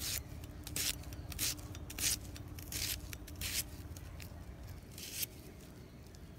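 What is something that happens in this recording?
A knife slices through an onion with short, crisp crunches.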